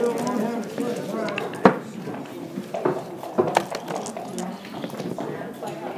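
Dice rattle in a shaker cup.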